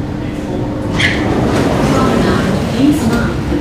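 Metro train doors slide open.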